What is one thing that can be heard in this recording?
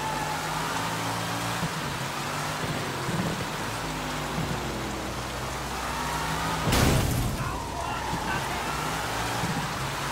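A sports car engine roars at high revs.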